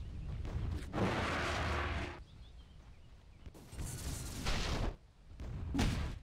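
Spell effects whoosh and crackle in a fight.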